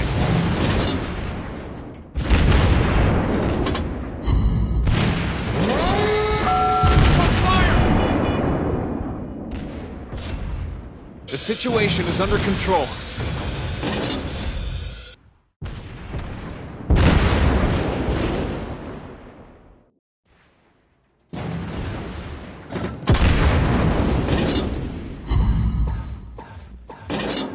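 Heavy guns boom again and again, with loud rumbling blasts.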